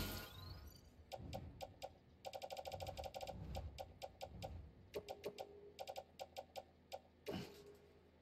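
Short electronic menu beeps and clicks sound in quick succession.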